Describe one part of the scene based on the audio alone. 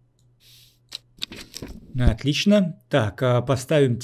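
A heavy book snaps shut with a soft thud.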